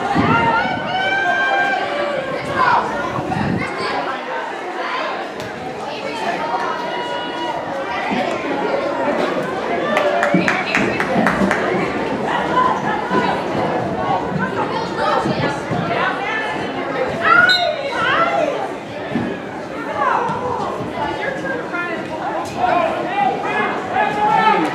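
A crowd of spectators talks and calls out nearby, outdoors.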